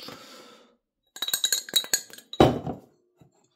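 A glass jar clinks against other jars.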